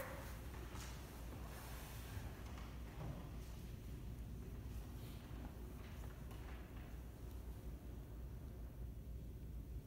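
A piano plays softly in a large, echoing hall.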